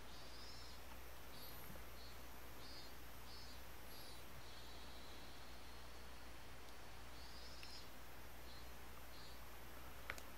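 A felt-tip marker squeaks in short strokes on a whiteboard.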